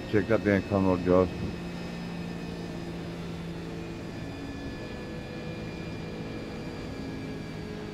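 A racing car engine hums steadily.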